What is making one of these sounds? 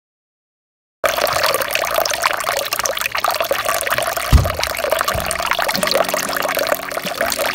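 A thin stream of water splashes steadily from a spout.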